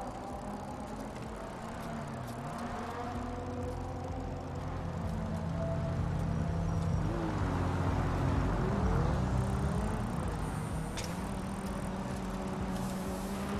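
Bicycle tyres roll steadily over a road.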